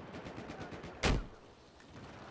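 A loud rocket launch booms once.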